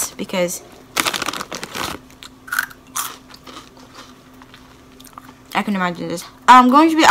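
Crunchy chips crunch as a young woman chews.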